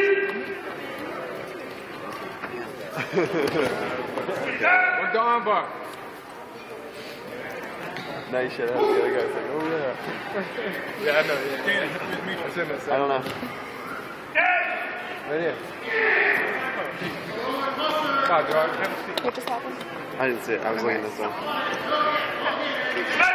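Men and women talk and call out nearby in a large echoing hall.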